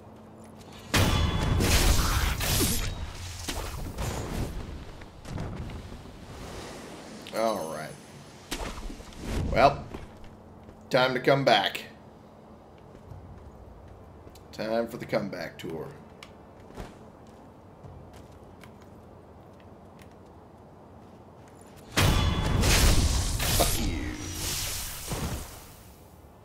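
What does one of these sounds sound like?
Blades slash and clash with heavy, fleshy impacts.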